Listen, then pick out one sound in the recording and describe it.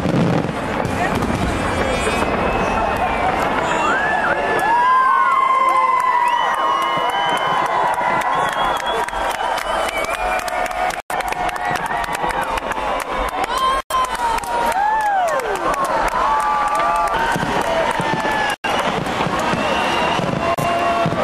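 Fireworks whistle as they shoot upward.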